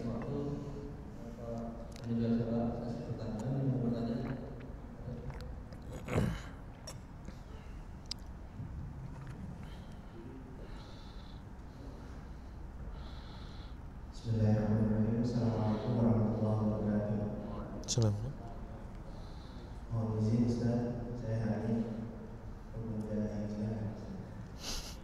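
A man speaks calmly into a nearby microphone, pausing at times.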